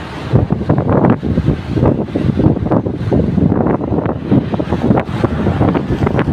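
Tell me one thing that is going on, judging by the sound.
Wind rushes and buffets loudly against a moving rider's microphone.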